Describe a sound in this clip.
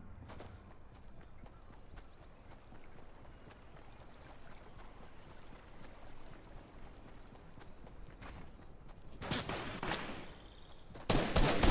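Video game footsteps run.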